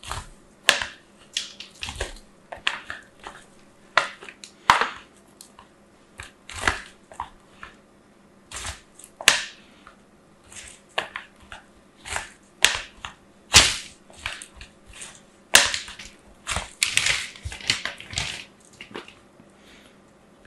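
Soft clay scrapes and crumbles against a plastic grater in short strokes.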